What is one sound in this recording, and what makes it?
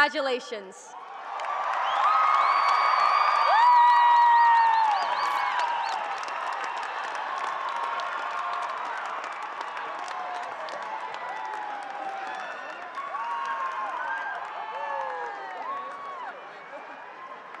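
A large crowd cheers and whoops loudly in a large echoing hall.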